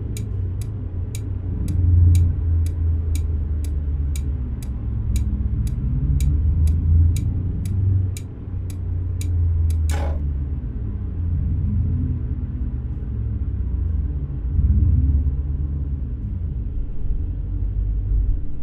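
A car engine hums low and steady while driving slowly.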